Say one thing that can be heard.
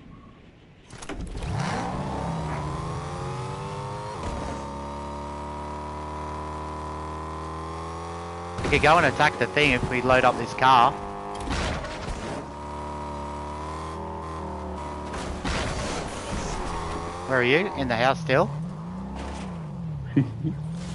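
A car engine roars and hums steadily, rising and falling in pitch.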